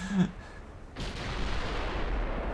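A heavy ship's gun fires with a loud boom.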